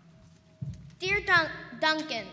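A young girl speaks loudly through a microphone in an echoing hall.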